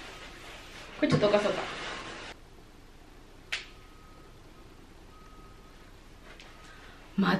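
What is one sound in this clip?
A young woman speaks cheerfully and close by.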